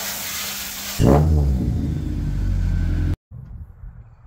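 A car engine rumbles at idle in an echoing garage.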